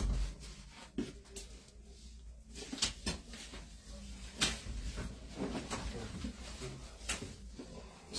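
Glass cups clink and tap softly.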